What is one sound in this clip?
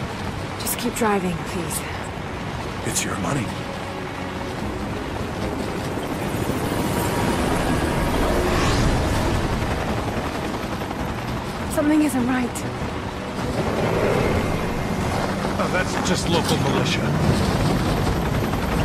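A young woman grunts and gasps with effort.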